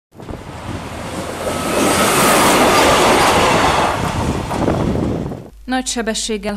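A train rumbles loudly past on the rails.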